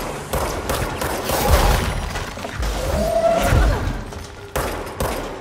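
Debris and concrete crash and scatter.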